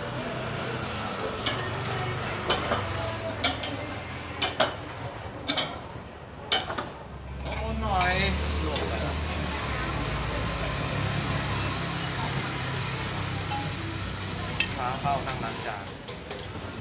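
Metal ladles and bowls clink and clatter.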